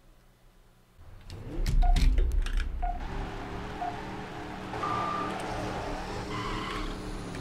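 A car engine revs and roars as a race starts.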